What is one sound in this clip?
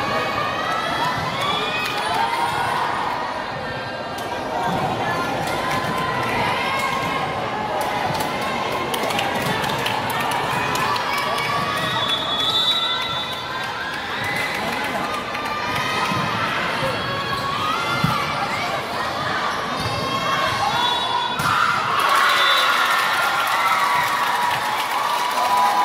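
A crowd of young people cheers and shouts throughout, echoing in a large hall.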